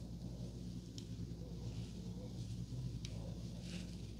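Hair pins click faintly as they slide into place.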